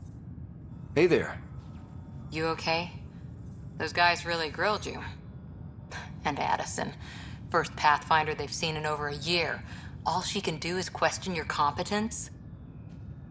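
A woman speaks calmly and clearly.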